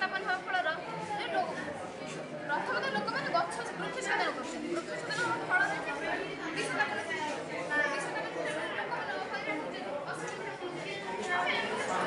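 A girl speaks close by with animation.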